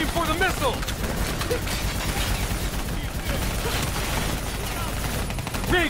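Automatic gunfire rattles rapidly and loudly.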